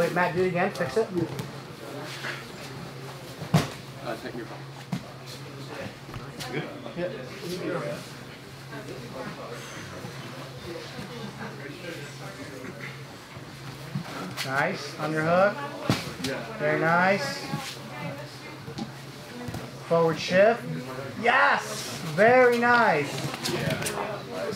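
A man speaks calmly and explains nearby.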